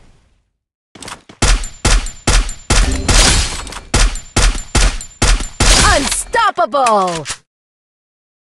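Rifle shots fire in quick bursts.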